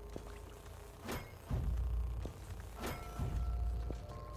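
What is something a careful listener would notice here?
A character's dash makes a quick whooshing burst.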